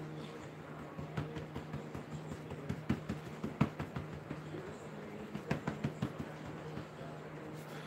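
Dough thumps and slaps on a counter as a man kneads it.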